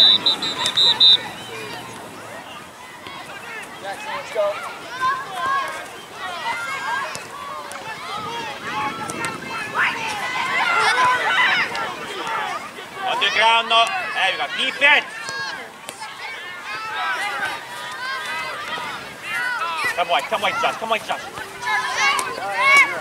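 Spectators on the sideline cheer and call out.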